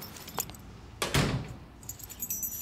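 A wooden door thuds shut nearby.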